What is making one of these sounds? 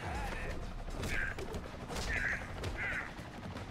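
Blows land in a fight, with dull thuds.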